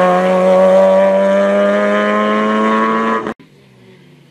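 A rally car engine revs loudly as the car drives away.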